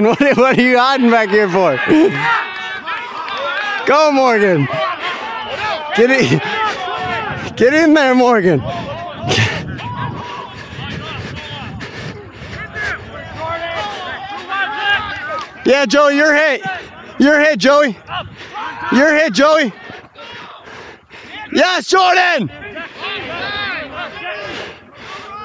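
Young men shout and call out loudly across an open field.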